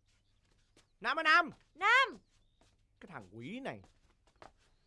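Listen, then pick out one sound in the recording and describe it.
A young woman speaks sharply and loudly close by.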